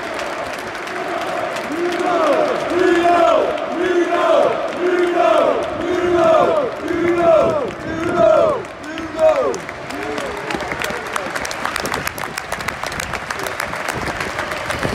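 A stadium crowd cheers and claps in a large open space.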